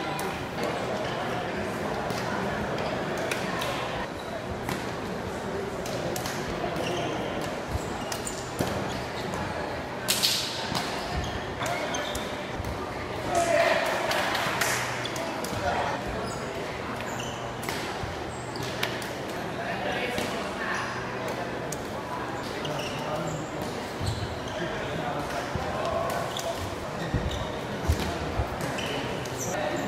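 Shoes squeak and thud on the hall floor.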